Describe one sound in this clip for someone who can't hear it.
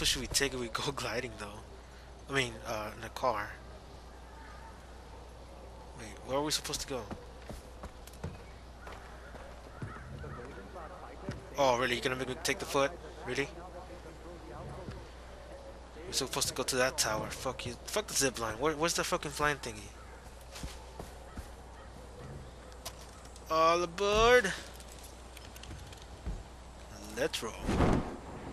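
A man talks with animation into a close microphone, in bursts with pauses.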